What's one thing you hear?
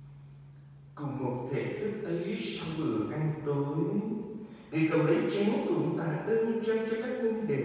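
A group of men and women sing together in a large echoing hall.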